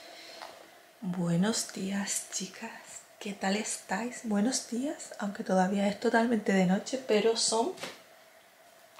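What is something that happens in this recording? A young woman talks close by, in a relaxed, chatty way.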